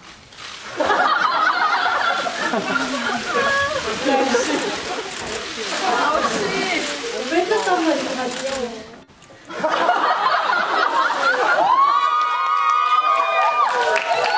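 A young woman exclaims playfully nearby.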